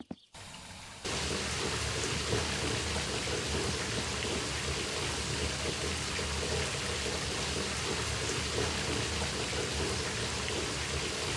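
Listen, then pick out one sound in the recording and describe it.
Water sprays steadily from a shower.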